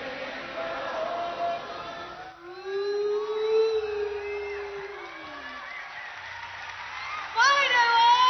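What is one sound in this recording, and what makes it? A band plays live music.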